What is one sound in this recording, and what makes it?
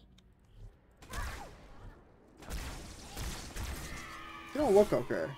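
Gunfire and explosions burst in a video game.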